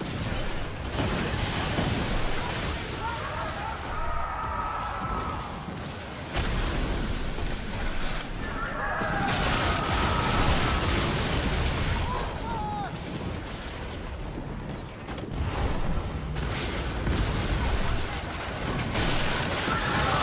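Cannons boom in rapid, heavy blasts.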